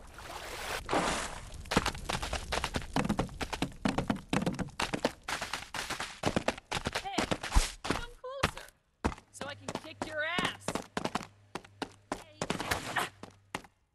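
A goat's hooves clatter quickly on wood and stone.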